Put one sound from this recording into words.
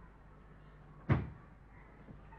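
A fridge door shuts with a thud.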